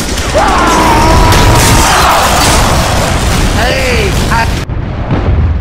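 A rocket launcher fires and explosions boom.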